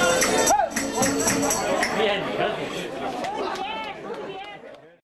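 Men and women chatter loudly close by.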